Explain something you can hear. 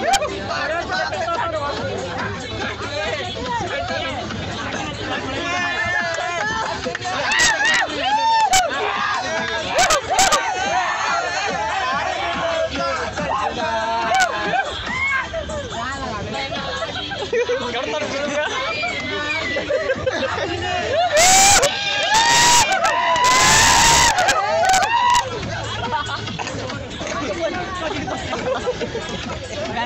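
A crowd of young men laugh.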